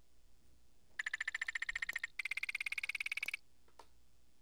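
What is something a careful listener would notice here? Rapid electronic ticks sound as a game's rank bar fills up.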